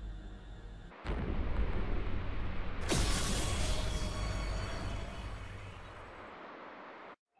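A deep, loud rumbling roar swells and then fades.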